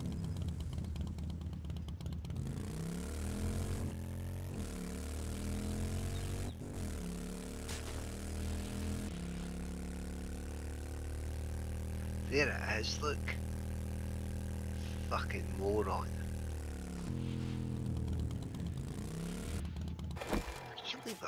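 A motorbike engine revs and hums as it rides over rough ground.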